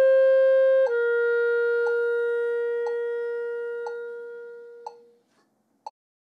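A clarinet plays a long, steady note that slowly fades away.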